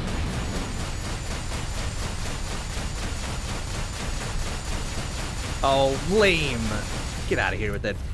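A spaceship engine hums low and steadily.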